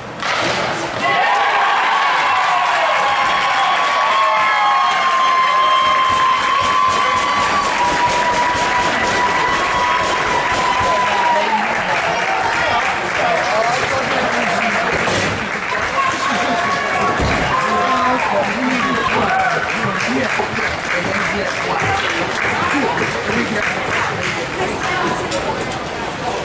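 A crowd cheers and screams in an echoing ice rink.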